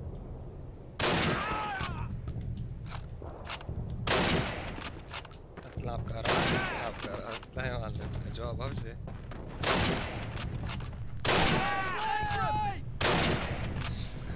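Rifle shots crack loudly, one every few seconds.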